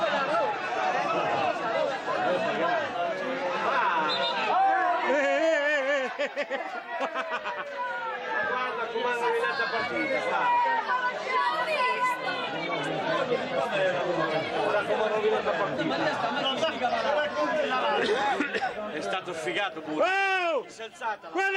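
A crowd of adult spectators talks and shouts in a small covered stand outdoors.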